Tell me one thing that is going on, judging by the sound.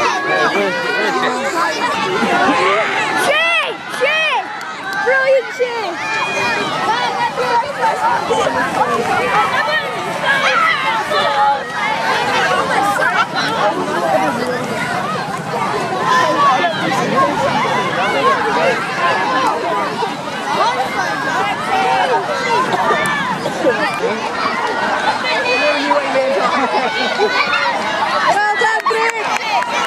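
A crowd of children and adults shouts and cheers outdoors.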